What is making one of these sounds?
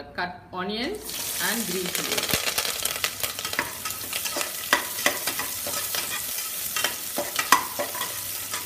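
Chopped onions sizzle in hot oil.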